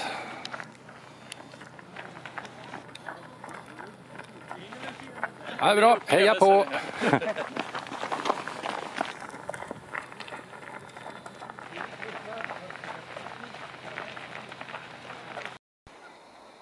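Runners' shoes crunch and patter on packed snow.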